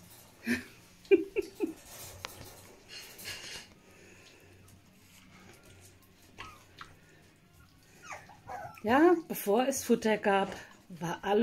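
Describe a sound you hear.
Puppies lap and chew wet food noisily.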